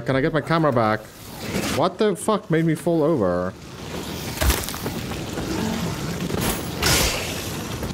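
Fire bursts with a loud whoosh and roar.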